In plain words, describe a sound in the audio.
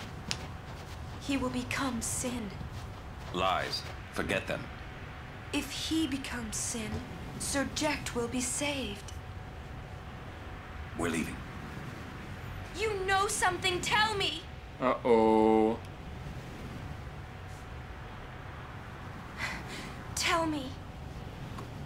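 A young woman speaks earnestly, then pleads.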